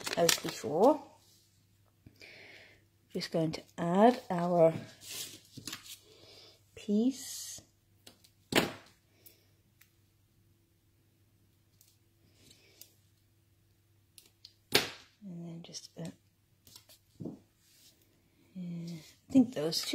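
Paper rustles softly as hands handle a small cut-out.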